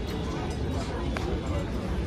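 A crowd of people chatters quietly at a distance.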